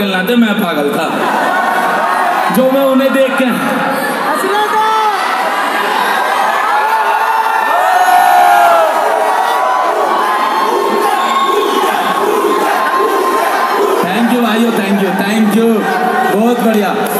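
Music plays loudly through speakers.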